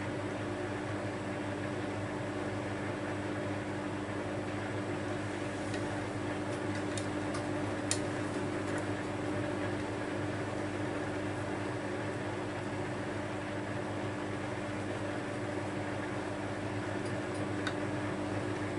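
Laundry tumbles and clatters softly inside a washing machine drum.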